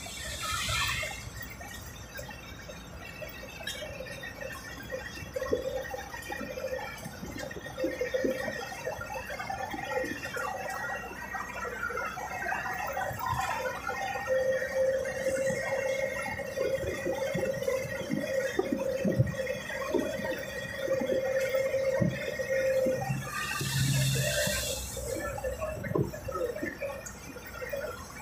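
Wind and road noise rush past an open window.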